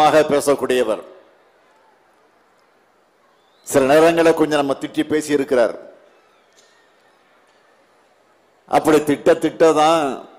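A middle-aged man speaks forcefully into a microphone over loudspeakers, in short bursts with pauses.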